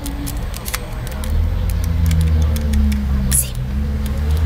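Small plastic phone keys click under a finger.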